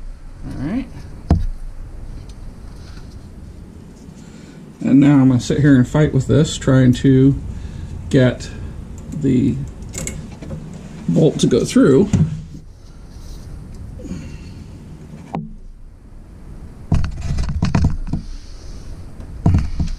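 Metal parts clink and rattle under a working hand.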